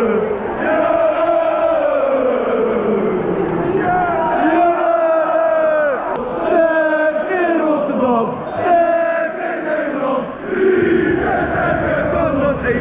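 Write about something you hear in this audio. A large crowd of football fans sings and chants loudly in a stadium.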